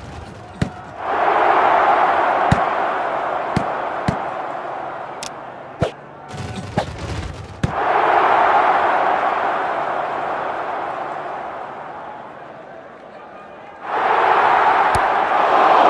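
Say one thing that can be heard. A crowd cheers loudly in bursts that slowly fade.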